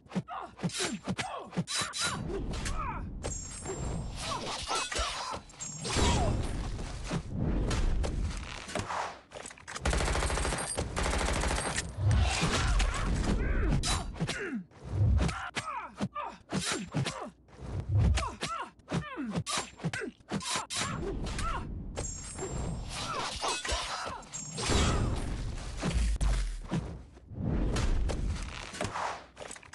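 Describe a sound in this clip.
Heavy thuds and impacts land during the fighting.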